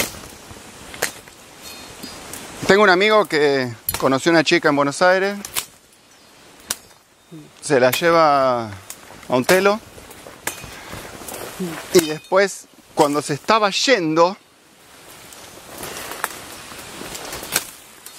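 Leaves and twigs rustle and snap as someone pushes through dense undergrowth.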